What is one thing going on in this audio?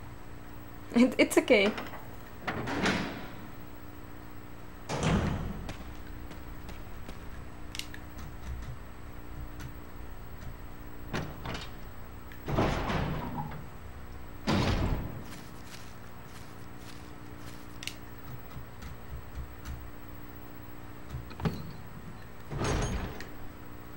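A heavy metal door creaks and groans open slowly.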